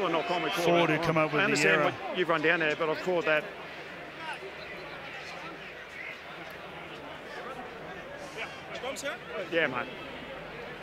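A large crowd murmurs in a stadium, outdoors.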